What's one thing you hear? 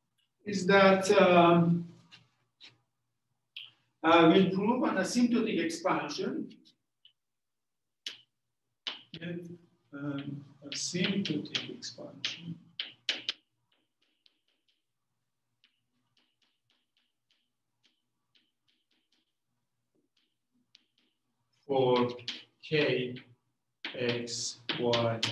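A middle-aged man lectures calmly, close by.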